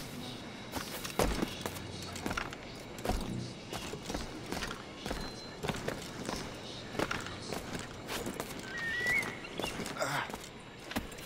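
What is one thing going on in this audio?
Hands grip and scrape on brick and stone as a figure climbs a wall.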